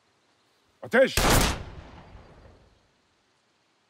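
A gunshot cracks and echoes away outdoors.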